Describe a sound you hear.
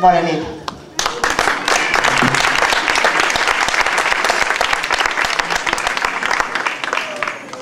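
A crowd applauds outdoors.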